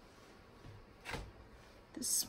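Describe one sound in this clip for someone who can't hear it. A stamp taps lightly onto an ink pad.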